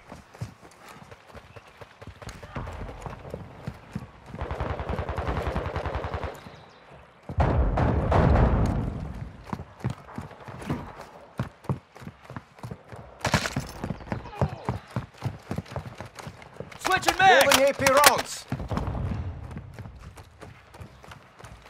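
Footsteps thud quickly across a wooden deck.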